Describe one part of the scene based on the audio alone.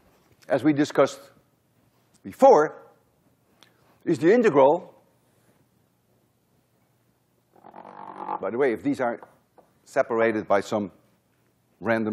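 A man lectures in a calm, measured voice through a microphone, in short phrases with pauses.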